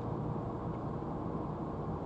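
A cat chews and crunches dry food.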